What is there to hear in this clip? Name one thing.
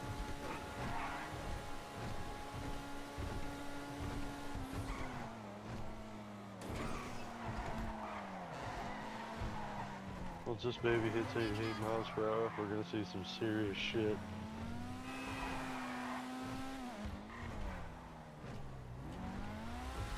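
A sports car engine roars steadily, its pitch rising and falling as it revs and shifts gears.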